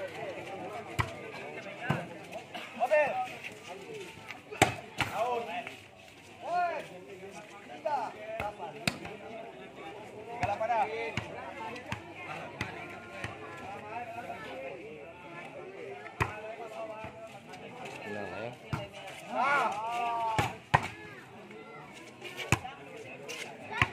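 Players kick a ball with thuds outdoors.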